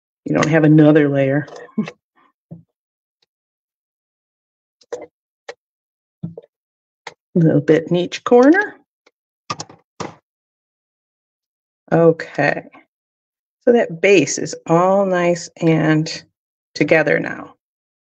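An older woman talks calmly into a microphone, with pauses.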